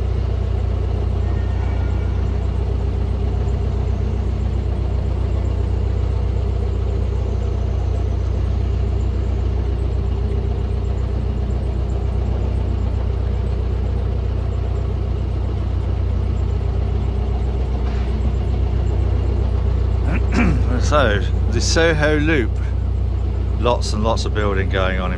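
A boat engine chugs with a steady low throb.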